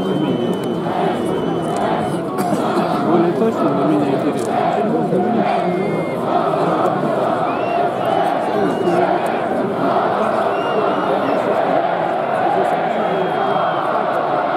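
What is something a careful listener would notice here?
A large stadium crowd chants and sings together outdoors.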